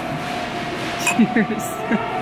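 Two glasses clink together.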